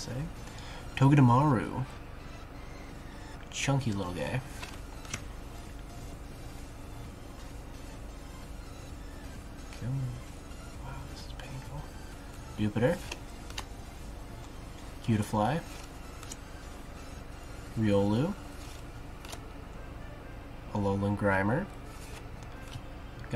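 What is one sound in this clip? Trading cards rustle and slide in a man's hands.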